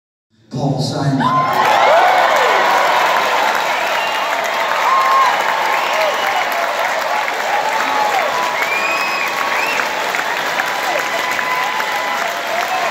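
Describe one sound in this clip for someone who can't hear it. A large crowd applauds loudly in a big echoing hall.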